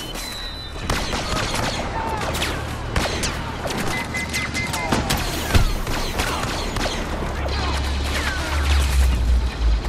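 Blaster guns fire rapid bursts of shots.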